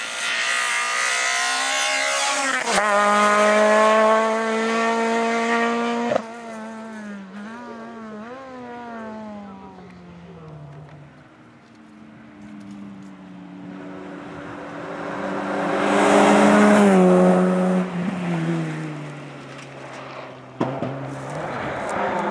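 A rally car engine revs hard and shifts gears as the car speeds past.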